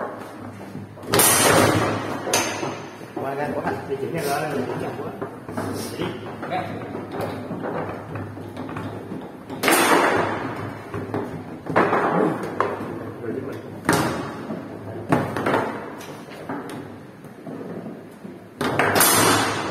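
A foosball ball clacks against plastic players and the table walls.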